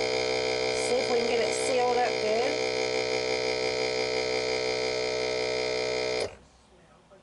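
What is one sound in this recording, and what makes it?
A vacuum sealer hums steadily, then stops.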